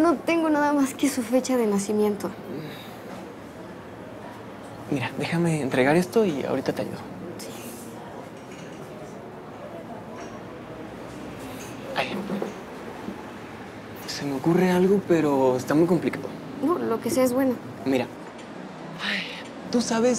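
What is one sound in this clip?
A young woman talks with animation nearby.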